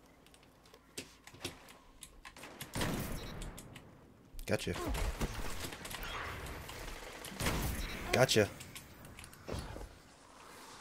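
Gunshots from a video game rifle fire in bursts.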